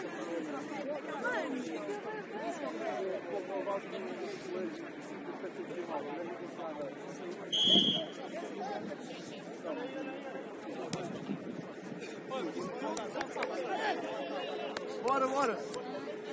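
Young men talk and call out to each other outdoors, close by.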